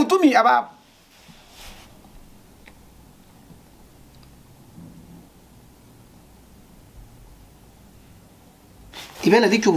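A man speaks calmly close to a microphone.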